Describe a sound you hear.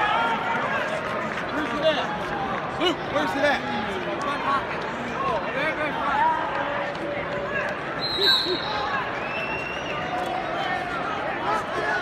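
A large crowd chatters and calls out in a large echoing arena.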